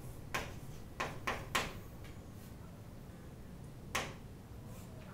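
Chalk taps and scrapes on a chalkboard.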